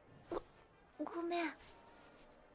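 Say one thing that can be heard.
A young woman speaks softly and hesitantly.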